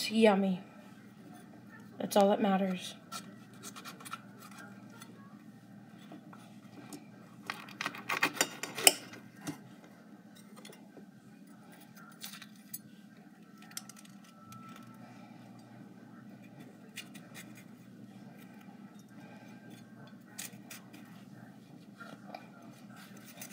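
A crisp green pepper snaps and crunches as it is broken apart by hand.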